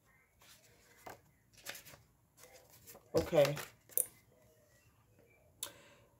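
Cards rustle and tap against a table.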